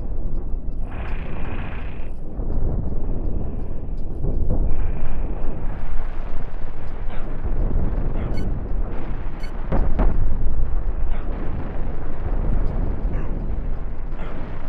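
Explosions rumble in a video game.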